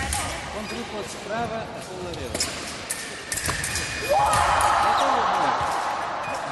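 Sports shoes squeak sharply on a hard floor in a large echoing hall.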